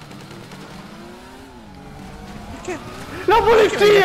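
A motorbike engine hums and revs.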